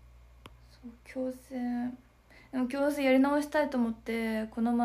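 A young woman speaks close to a microphone in a light, animated voice.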